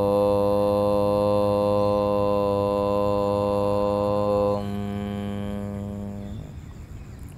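A man chants a long, steady hum that fades out.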